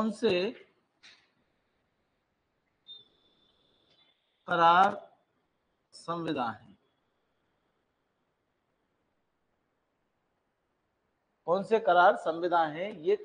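A middle-aged man speaks in short bursts, close to a microphone.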